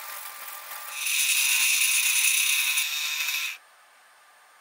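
A machine whirs loudly.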